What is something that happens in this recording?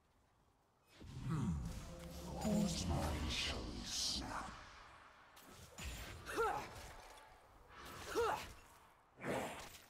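Spell blasts and weapon clashes ring out in a fast fight.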